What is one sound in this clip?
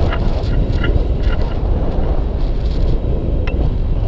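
A man talks close by, over the wind.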